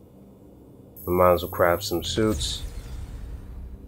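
A game menu plays a bright chime as an item is crafted.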